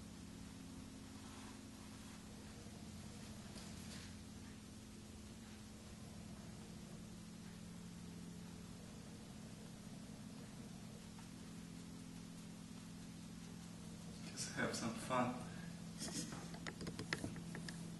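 A brush sweeps softly across paper.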